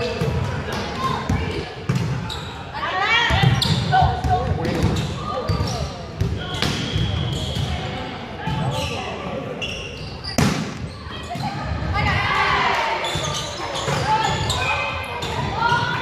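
Young women call out and chatter in a large echoing gym.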